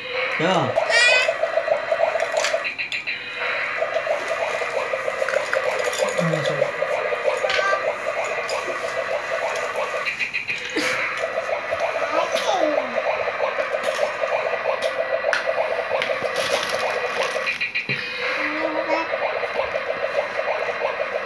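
Plastic toy dishes clink and clatter.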